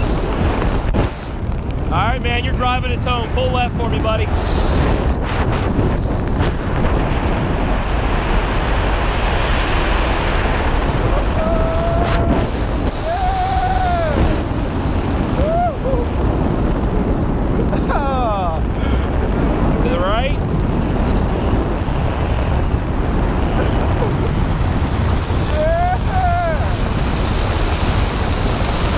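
Strong wind roars steadily against a microphone.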